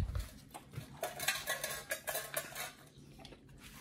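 A metal bowl scrapes and rattles on a hard floor.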